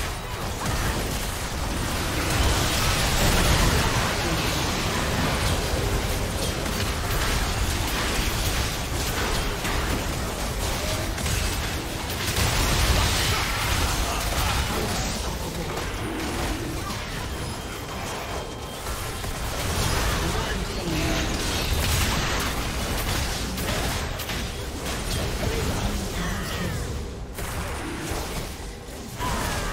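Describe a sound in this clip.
Spell effects crackle, whoosh and clash in a busy game battle.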